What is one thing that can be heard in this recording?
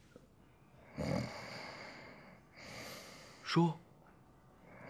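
A man speaks quietly in short phrases, close by.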